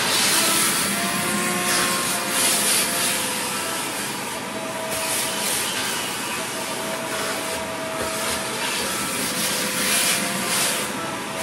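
A vacuum hose rattles as it sucks up debris from a drawer.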